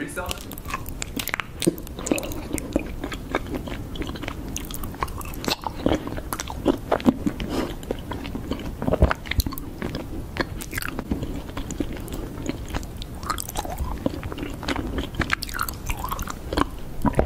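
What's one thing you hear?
Honeycomb is chewed with wet, sticky crunching close to a microphone.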